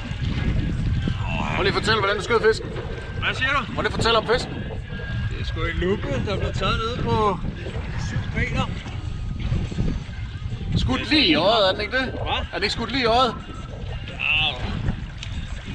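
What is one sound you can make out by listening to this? A man talks excitedly close by.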